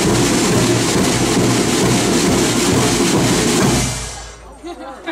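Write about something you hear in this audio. A brass band plays loudly outdoors.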